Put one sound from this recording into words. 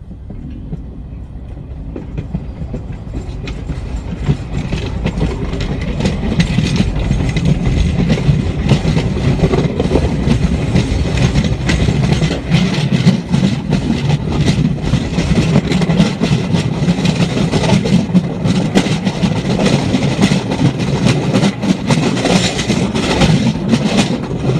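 Wheels rattle and clatter over rails.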